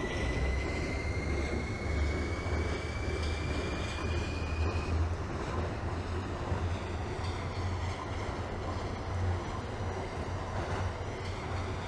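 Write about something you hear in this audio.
A subway train rumbles along the rails through a tunnel.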